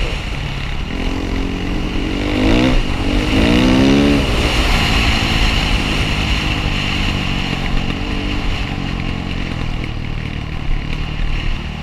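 Tyres crunch over a dirt track.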